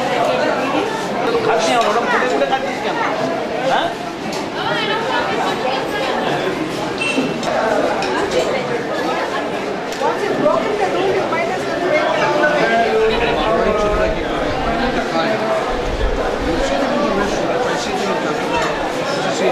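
A crowd of men and women chatters indoors throughout.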